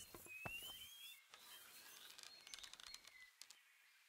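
A bowstring creaks as a bow is drawn.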